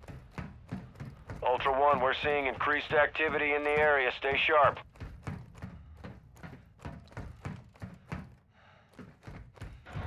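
Footsteps tread quickly across a hard floor.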